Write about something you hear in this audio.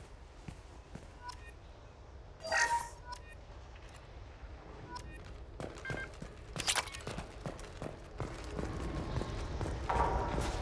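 Footsteps tap on a hard metal floor.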